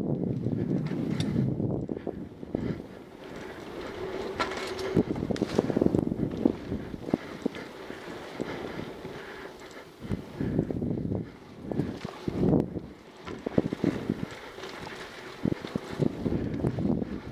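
Bike tyres roll and rattle over a rough dirt trail.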